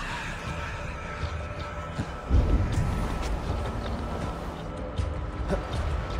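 Hands and boots scrape on rock during a climb.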